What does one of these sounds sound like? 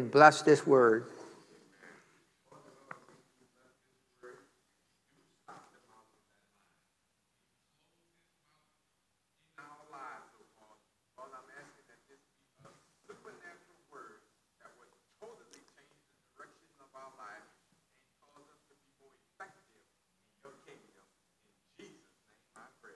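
A man speaks slowly and calmly through a microphone, with long pauses.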